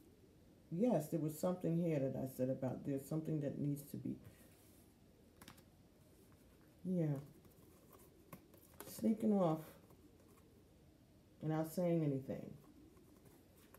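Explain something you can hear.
A woman speaks calmly and close up, in short bursts with pauses.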